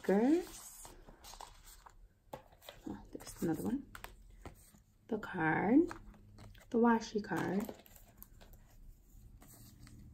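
Stiff paper sheets rustle and tap close by.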